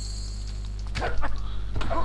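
A burst of flame whooshes.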